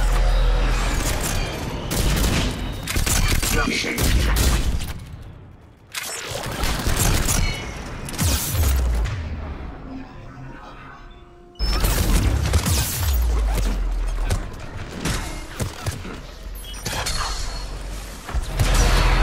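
Gunfire bursts in rapid rattling volleys.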